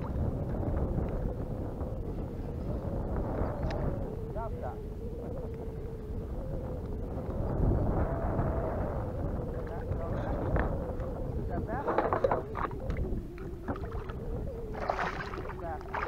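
Wind rumbles across open water.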